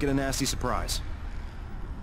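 A young man speaks briefly through a microphone.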